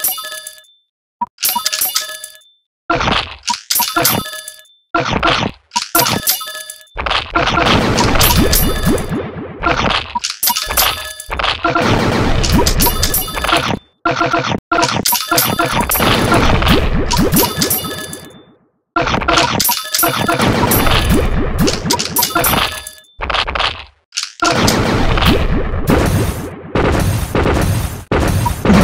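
Cartoon battle sound effects clash and pop rapidly.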